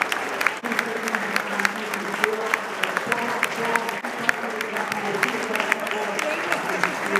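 A large crowd claps in an open stadium.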